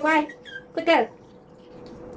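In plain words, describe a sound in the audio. A small dog yelps sharply.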